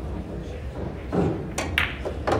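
A cue strikes a ball sharply.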